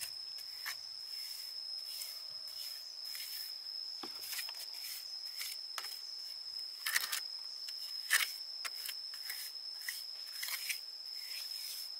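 A trowel scrapes and slaps wet mud.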